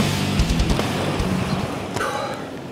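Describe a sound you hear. Inline skate wheels roll and rumble on concrete.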